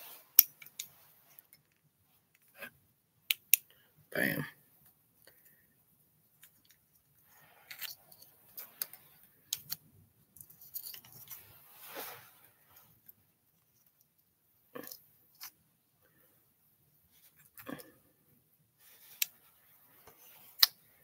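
A flashlight's switch clicks sharply.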